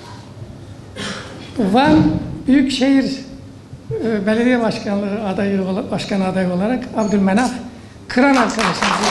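An elderly man speaks calmly into microphones in an echoing hall.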